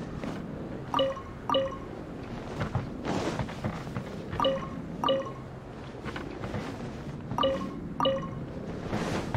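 A bright two-note chime rings, again and again.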